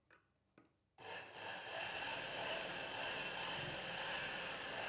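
A sewing machine runs steadily with a fast whirring hum.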